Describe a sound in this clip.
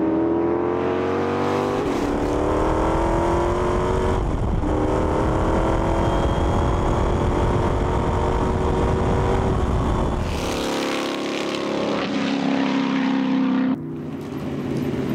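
A racing car engine roars loudly and rises in pitch as it speeds up through the gears.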